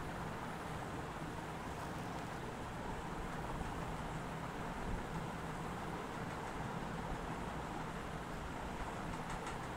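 A large propeller plane's engines drone steadily.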